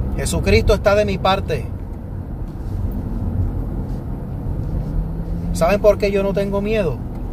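A man sings loudly close to a microphone.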